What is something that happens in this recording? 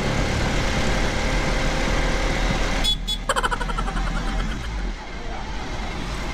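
A small motor vehicle's engine hums steadily while driving along a road.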